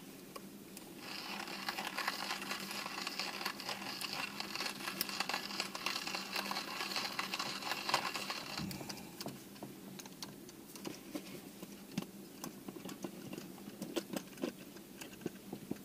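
A hand grinder crunches coffee beans with a steady rasping.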